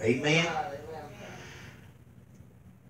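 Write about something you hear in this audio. A man speaks through a microphone and loudspeakers in an echoing room.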